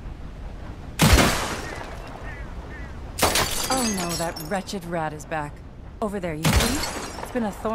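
Gunshots ring out sharply, one after another.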